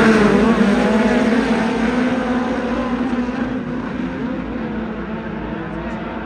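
Racing car engines roar loudly and slowly fade.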